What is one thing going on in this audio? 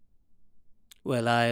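A man speaks firmly nearby.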